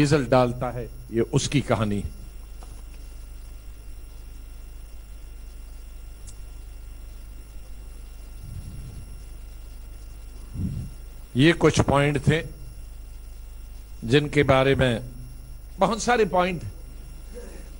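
A man speaks into a microphone in short bursts with pauses.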